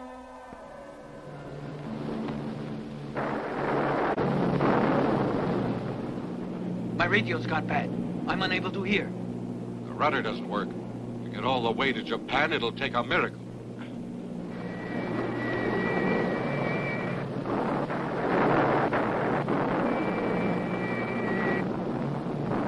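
Propeller engines drone steadily.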